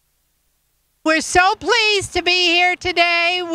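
A group of men and women sing together.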